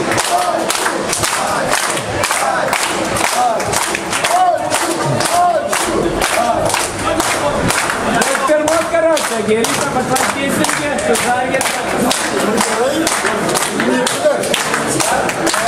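A crowd of young men claps along in a rhythm.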